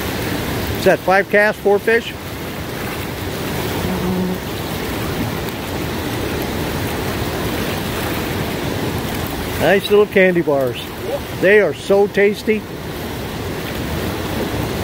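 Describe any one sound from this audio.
River rapids rush steadily nearby.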